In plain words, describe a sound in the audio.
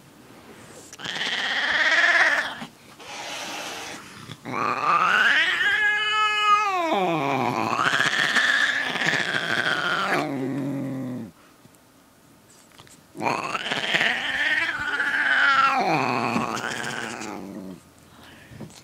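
A cat yowls loudly in long, drawn-out meows close by.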